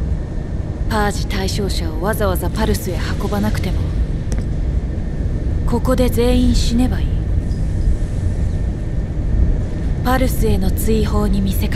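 A woman speaks in a firm, quiet voice.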